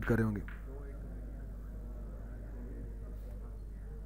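A cue strikes a snooker ball with a sharp click.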